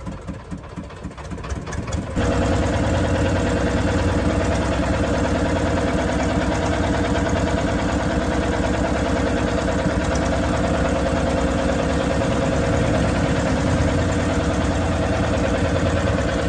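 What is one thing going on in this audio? Water rushes against the hull of a moving boat.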